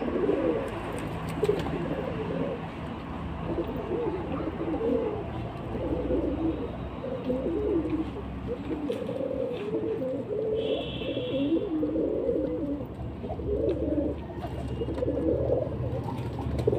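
Pigeons coo with low, throaty warbles close by.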